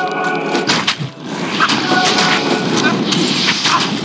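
Fireballs whoosh and burst.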